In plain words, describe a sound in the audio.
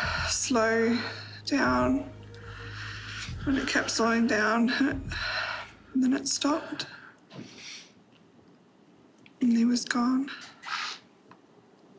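A young woman speaks softly and emotionally, close to a microphone.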